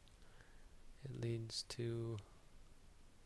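A man chants a low, steady tone close by.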